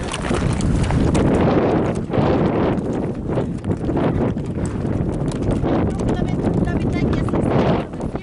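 Horse hooves clop on stony ground.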